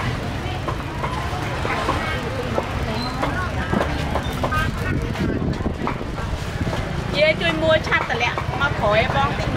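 A woman talks nearby in a lively voice.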